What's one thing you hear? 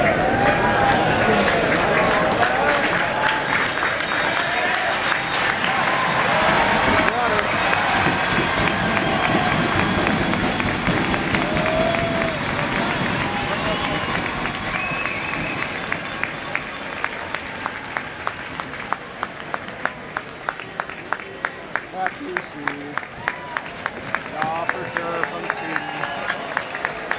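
A large crowd chatters and cheers in an echoing arena.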